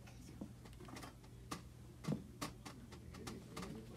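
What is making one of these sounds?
A child slaps drum pads with soft thuds.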